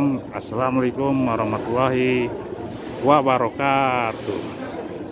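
A man chants loudly close by.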